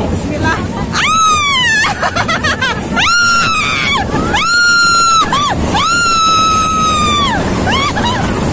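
A middle-aged woman screams and laughs loudly and excitedly.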